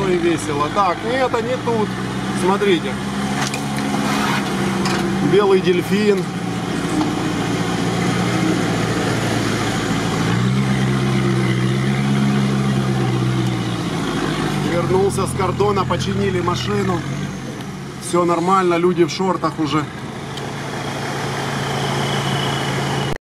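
A vehicle engine idles and revs steadily up close.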